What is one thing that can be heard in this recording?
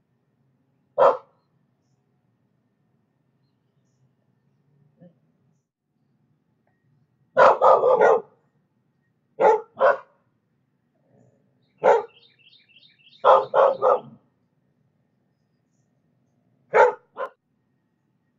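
A dog barks sharply in short bursts outdoors.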